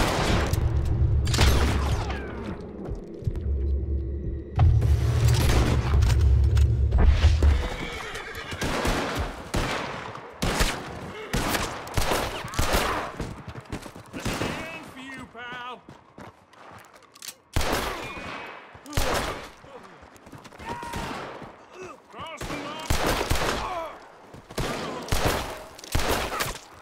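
Revolver shots crack loudly, one after another.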